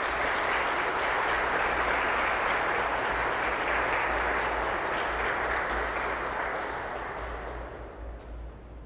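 A pipe organ plays a loud, full chord that dies away into the echo of a large hall.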